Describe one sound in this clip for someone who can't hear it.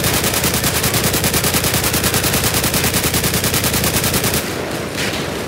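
A rifle fires in a rapid, continuous burst.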